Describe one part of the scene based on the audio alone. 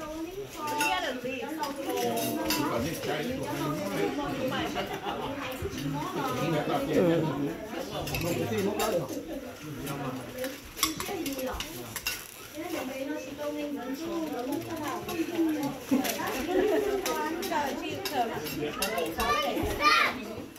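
Utensils clink against dishes.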